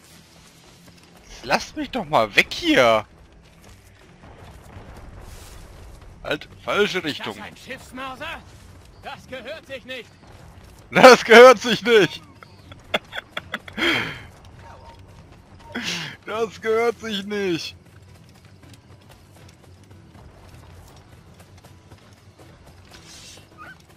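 Footsteps run over grass and stone.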